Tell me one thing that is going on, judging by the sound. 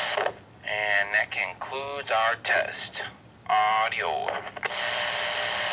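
A man's voice speaks briefly through a crackly handheld radio speaker.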